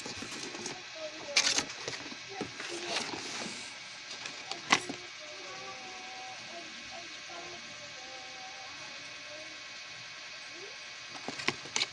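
Plastic fan blades clatter and rattle as they are handled.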